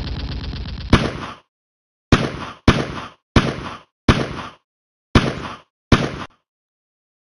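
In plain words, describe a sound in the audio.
A rifle fires several sharp shots in quick succession.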